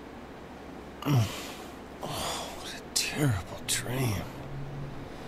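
A young man groans and sighs sleepily.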